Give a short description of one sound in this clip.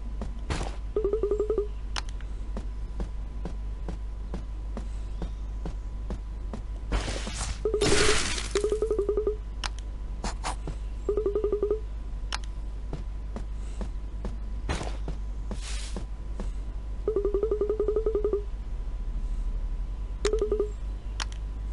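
Quick high electronic blips chatter in short bursts.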